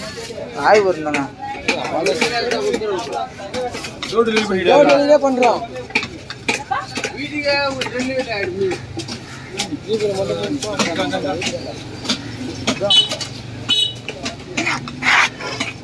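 A cleaver chops sharply on a wooden block.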